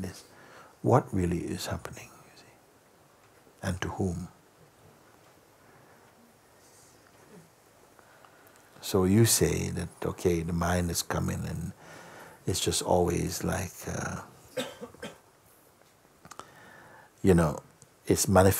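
An elderly man speaks calmly and slowly, with long pauses, close by.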